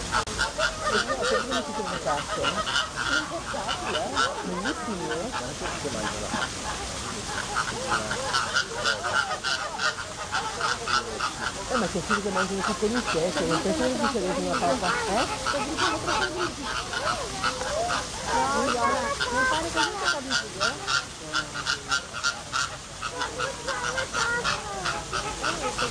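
A flock of flamingos honks and squawks noisily close by.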